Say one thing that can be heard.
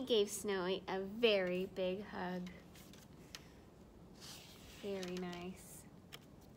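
A woman reads aloud in a lively, sing-song voice close by.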